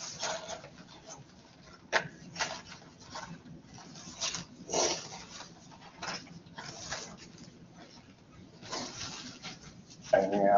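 Plastic crinkles and rustles as it is handled.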